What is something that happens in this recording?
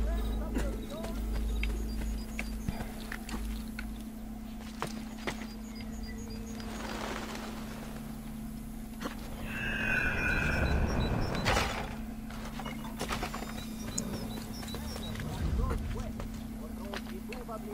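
Footsteps patter quickly across stone.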